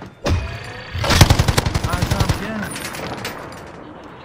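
Rapid gunfire rattles from a video game.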